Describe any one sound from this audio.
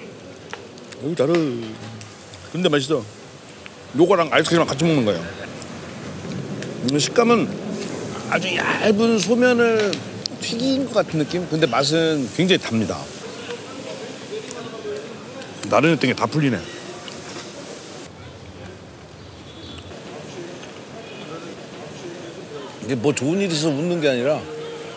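A middle-aged man speaks with animation, close by.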